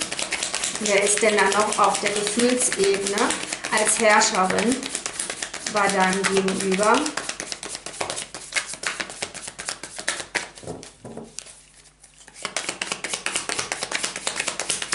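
Playing cards rustle and flick as they are shuffled.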